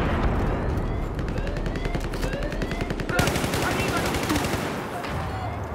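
A rifle fires rapid bursts of gunshots nearby.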